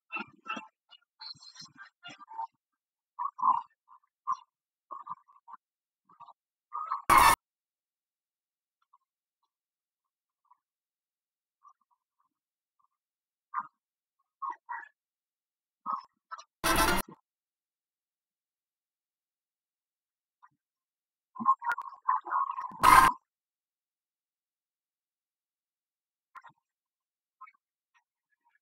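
Short electronic game jingles play in bursts.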